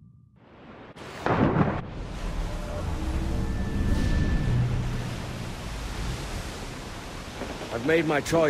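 Waves roll and wash on open sea.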